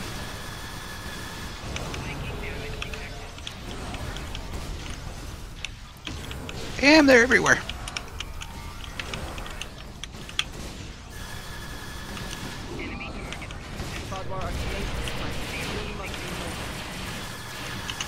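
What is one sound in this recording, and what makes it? Energy weapons zap and crackle in a fight.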